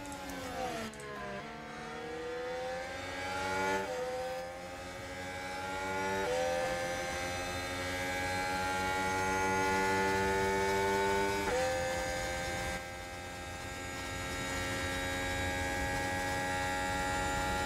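A racing car engine screams, rising in pitch and dropping sharply with each gear change.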